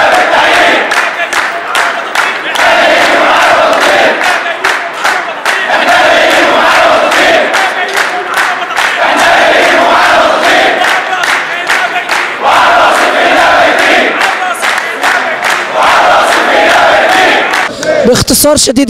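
A man shouts loudly.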